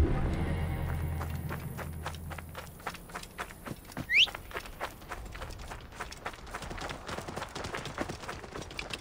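Footsteps crunch quickly over dry sand and gravel.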